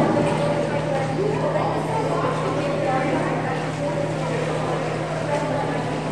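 A swimmer splashes while swimming to the pool edge.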